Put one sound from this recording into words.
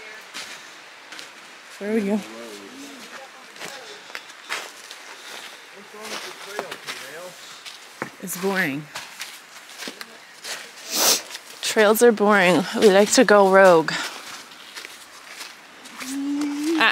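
Footsteps crunch through snow and dry leaves.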